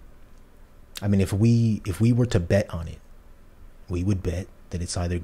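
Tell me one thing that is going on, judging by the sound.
A young man speaks calmly and close into a microphone.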